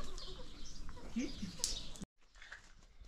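Hens cluck softly outdoors.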